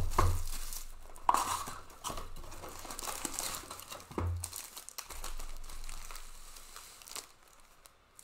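Foil packets crinkle and rustle as hands handle them.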